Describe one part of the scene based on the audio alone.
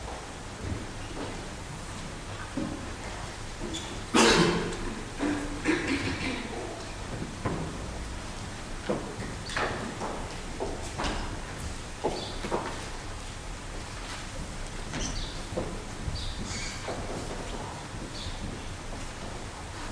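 A man speaks quietly at a distance in a large, echoing hall.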